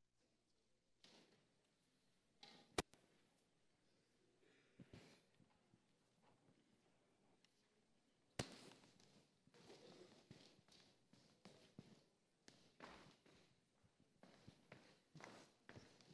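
Footsteps shuffle faintly across a wooden stage.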